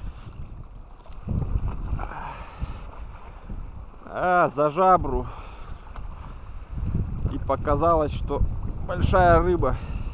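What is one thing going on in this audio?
Small waves lap against a grassy bank.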